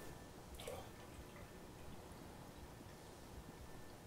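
Juice pours from a bottle into a glass jar.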